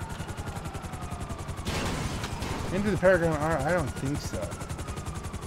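A helicopter's rotor thumps in a steady, fast beat.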